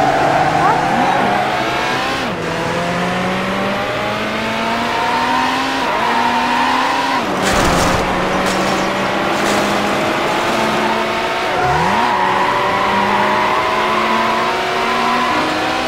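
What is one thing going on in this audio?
A racing car engine revs up and shifts through its gears.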